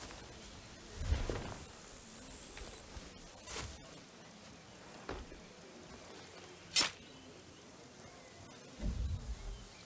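Leafy plants rustle as someone creeps through them.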